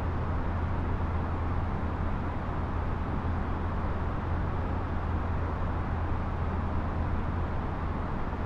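Jet engines drone steadily with a low rumble.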